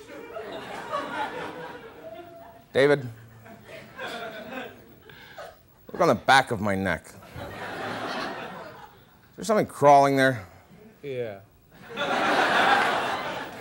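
Another man talks and laughs in reply.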